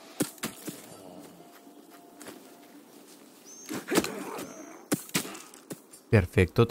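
Swords clash and strike in quick, sharp blows.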